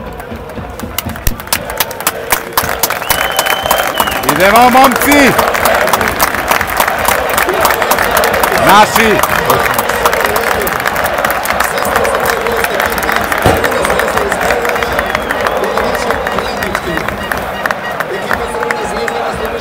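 Spectators clap their hands rapidly.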